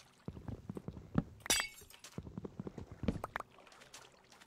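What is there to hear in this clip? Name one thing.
A pickaxe breaks blocks with quick crunching knocks.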